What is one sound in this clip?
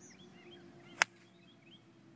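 A golf iron strikes a golf ball off turf with a sharp click.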